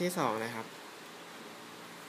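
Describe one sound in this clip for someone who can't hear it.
A laptop trackpad clicks softly.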